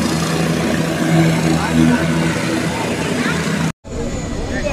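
A helicopter engine whines and hums steadily nearby.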